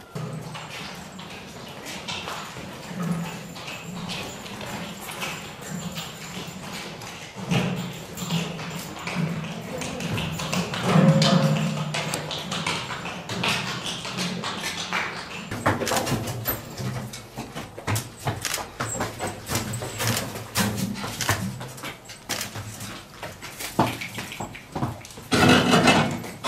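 Donkey hooves clop on a stone street.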